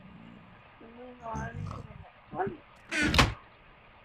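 A wooden chest creaks open in a video game.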